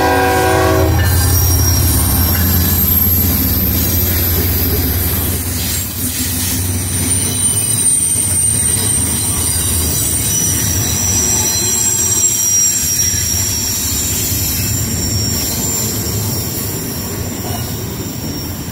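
Train wheels clatter and squeal on the rails.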